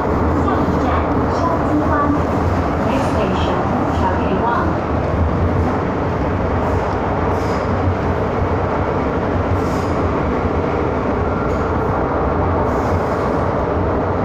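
A subway train rumbles steadily along the track.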